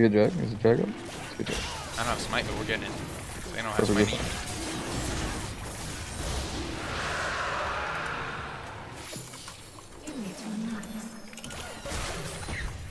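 Spells and weapon strikes from a fantasy video game crackle and whoosh.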